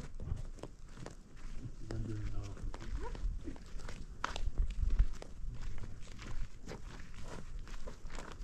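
Footsteps crunch on dry dirt outdoors.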